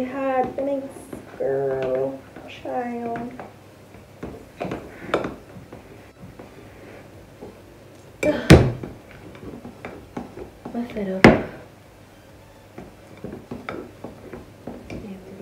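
A spoon scrapes and clinks against a bowl while stirring batter.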